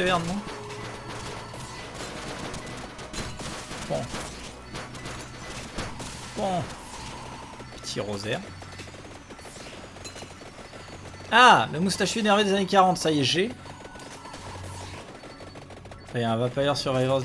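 Video game effects chime and whoosh steadily.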